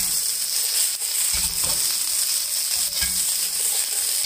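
Green beans rattle as a pan is tossed.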